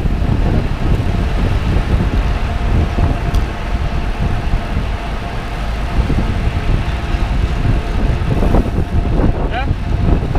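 Wind rushes loudly past, as when riding fast outdoors.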